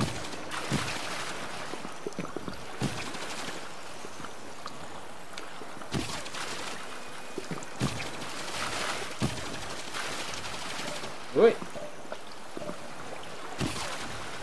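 A man makes short vocal sounds close to a microphone.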